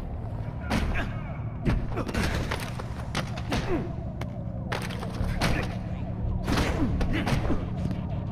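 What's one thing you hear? Punches thud against a body.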